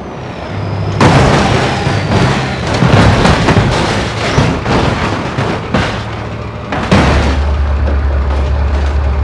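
A truck crashes, with metal banging and scraping.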